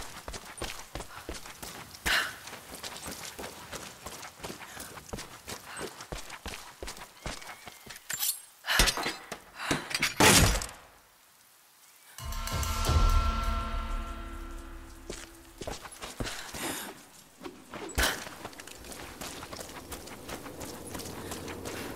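Footsteps crunch on gravel and stone.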